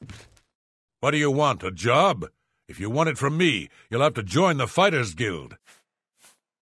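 A man speaks gruffly in a deep, growling voice.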